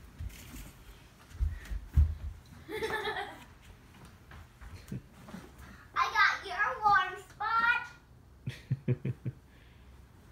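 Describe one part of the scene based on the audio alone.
Soft thumps and rustling come from a child climbing onto a cushioned chair.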